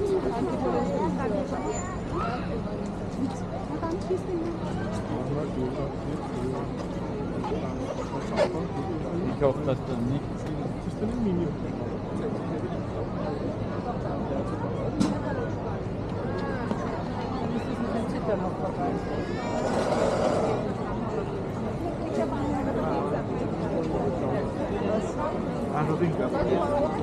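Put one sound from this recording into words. A crowd of people chatters outdoors, voices mixing in the open air.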